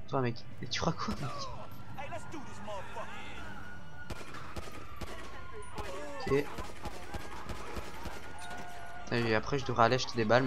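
Gunshots ring out repeatedly.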